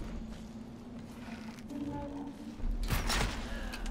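A wooden bow's string is drawn back and creaks.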